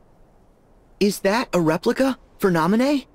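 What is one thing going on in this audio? A young man asks a question in a puzzled voice, close to the microphone.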